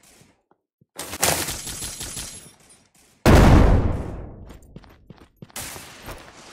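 Gunshots boom and echo.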